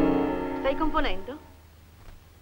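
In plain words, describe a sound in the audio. A piano plays a few notes and stops.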